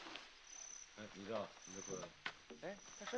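A young man speaks quietly and earnestly close by.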